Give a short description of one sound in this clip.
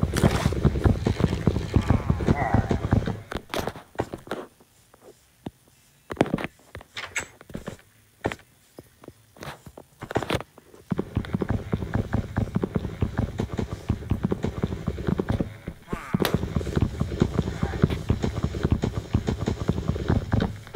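Wooden blocks crack and break in rapid game hits.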